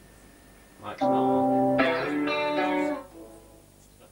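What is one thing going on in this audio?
An electric guitar plays a loud chord through an amplifier.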